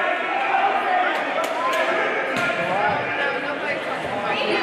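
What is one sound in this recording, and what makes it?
Sneakers squeak on a hardwood court in a large echoing gym.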